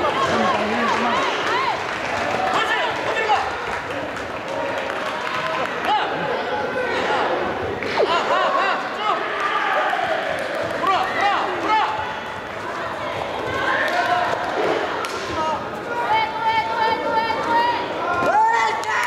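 Young male fighters shout sharply as they attack.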